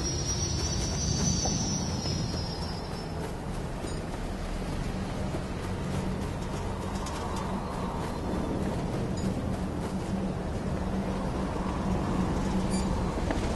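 Footsteps run quickly over soft sand.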